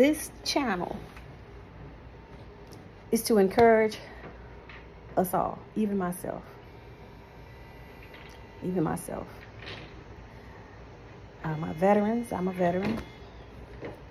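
A middle-aged woman talks calmly and close up, in short phrases with pauses.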